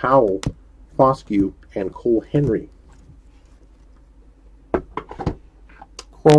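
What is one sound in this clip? A plastic card case clicks and taps as hands handle it.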